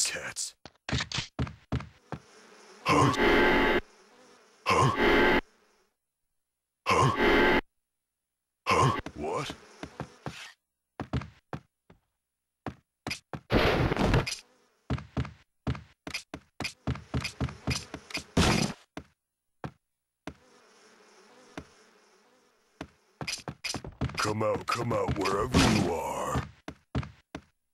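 Footsteps thud softly on wooden boards.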